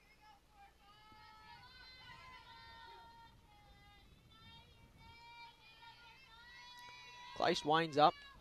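A crowd of spectators chants and cheers from the stands.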